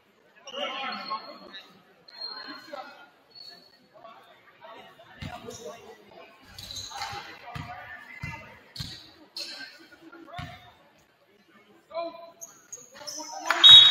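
Young players call out across an echoing gym.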